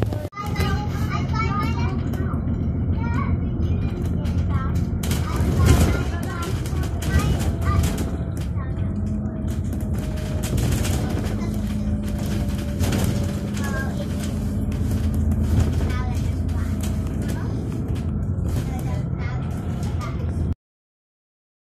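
A bus rattles and shakes as it moves.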